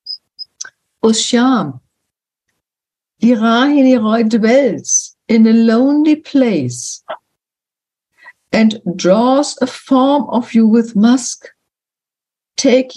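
An elderly woman speaks calmly through an online call.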